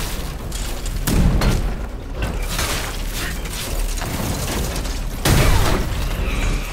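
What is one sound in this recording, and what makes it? Heavy blasts boom from a large armored enemy.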